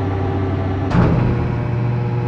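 A heavy lift machine jolts with a metallic clunk.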